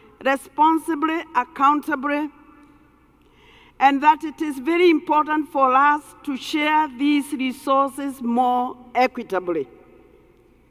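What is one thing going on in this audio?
An elderly woman speaks with feeling through a microphone in a large hall.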